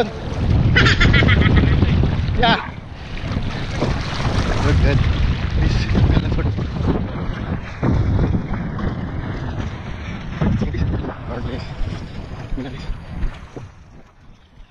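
Water splashes and churns close by.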